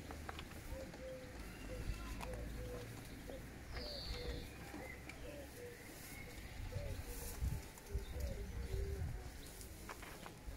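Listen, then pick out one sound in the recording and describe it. A young man plays a few notes on a clarinet.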